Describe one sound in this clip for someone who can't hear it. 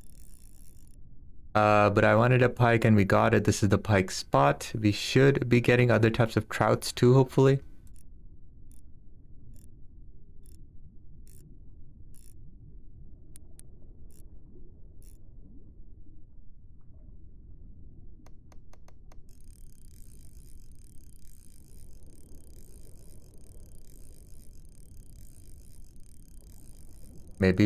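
Water murmurs with a low, steady underwater hum.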